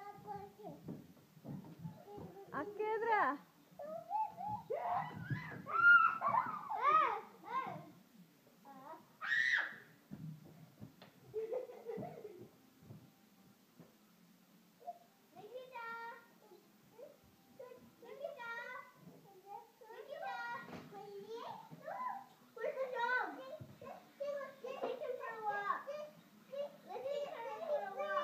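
Young children talk and squeal nearby with animation.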